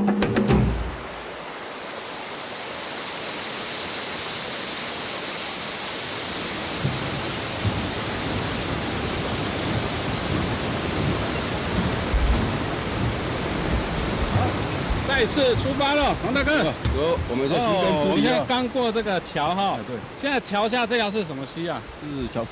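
A stream rushes and splashes over rocks.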